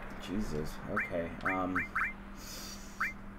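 Short electronic blips sound in quick succession.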